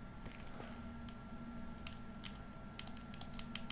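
Menu items click softly in a video game.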